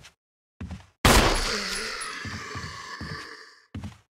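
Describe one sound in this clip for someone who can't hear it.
A handgun fires a loud shot that rings out and slowly fades.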